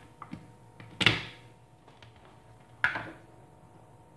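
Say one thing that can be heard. A plastic lid clunks as it is lifted off and set down.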